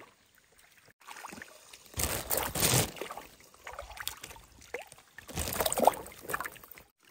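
A plastic bag crinkles and rustles loudly up close.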